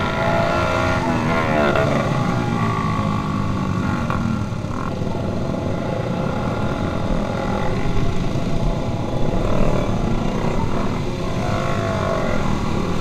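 Motorcycle engines drone steadily close by.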